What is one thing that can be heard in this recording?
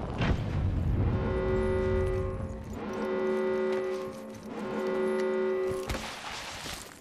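A pitched alarm tone sounds in repeated bursts.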